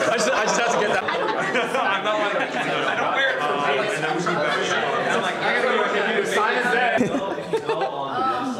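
Several men talk and laugh loudly together, close by.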